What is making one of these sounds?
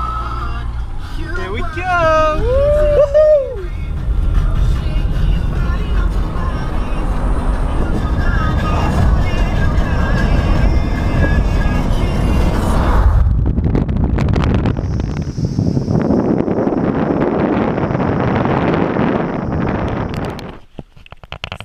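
A car engine hums and tyres roar steadily on the road.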